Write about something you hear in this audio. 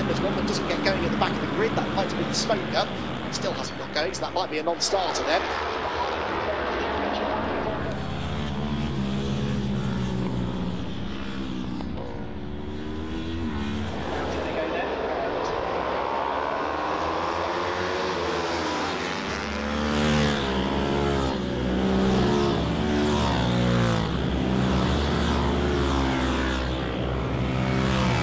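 Motorcycle engines roar and rev past at high speed.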